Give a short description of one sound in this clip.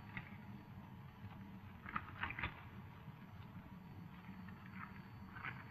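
Papers rustle as they are handled.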